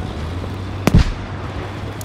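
A gun fires a loud single shot.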